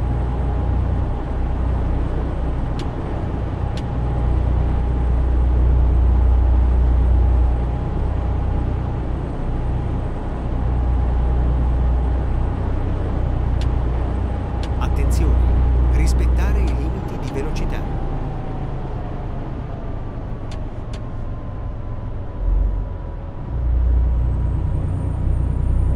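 Tyres roll on a road with a low hiss.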